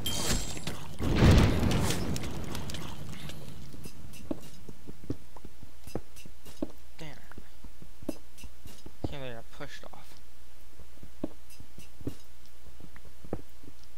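Stone blocks tap and crumble repeatedly as they are dug away.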